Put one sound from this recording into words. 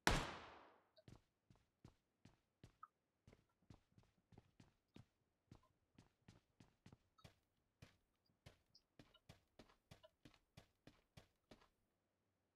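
Footsteps thud steadily.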